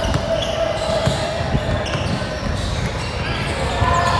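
A basketball bounces on a hard court with echoing thuds.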